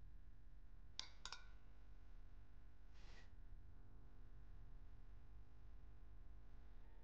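Ice clinks in a glass.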